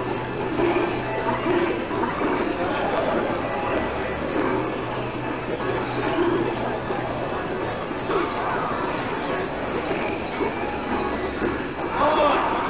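Video game punches and sound effects pop and thud.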